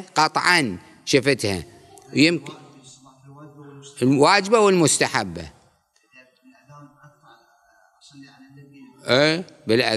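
An elderly man speaks calmly and deliberately into a microphone, with pauses.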